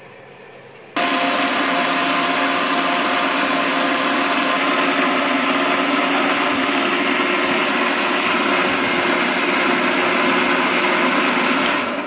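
A blender motor whirs loudly and steadily.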